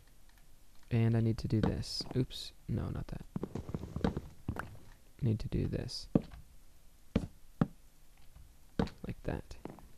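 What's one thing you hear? Blocks are set down with short, soft thuds.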